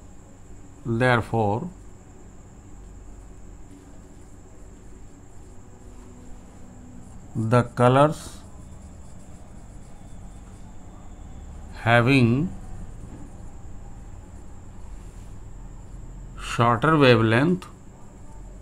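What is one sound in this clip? A middle-aged man explains in short phrases, close to the microphone.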